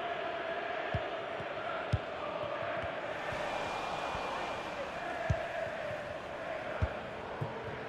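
A football is kicked with dull thuds now and then.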